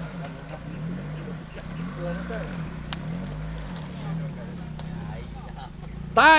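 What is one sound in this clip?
Tyres spin and churn through mud.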